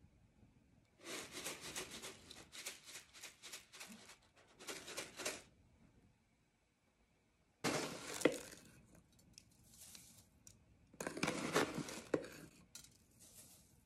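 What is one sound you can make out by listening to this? Dry spices rattle as a jar is shaken over a pan.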